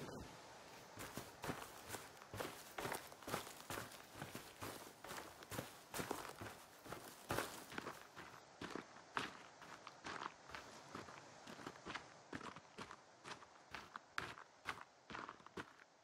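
Footsteps crunch steadily through dry grass and undergrowth.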